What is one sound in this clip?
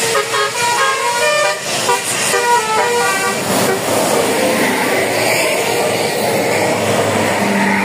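A bus engine rumbles as it passes close by.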